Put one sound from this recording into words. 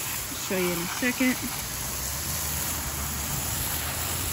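A garden hose nozzle sprays a hissing jet of water.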